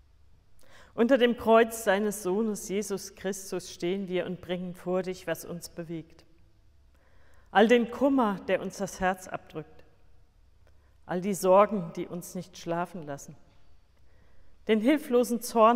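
A middle-aged woman reads aloud calmly and clearly, close by.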